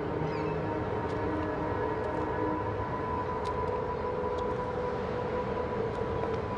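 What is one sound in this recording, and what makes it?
Footsteps walk slowly on concrete.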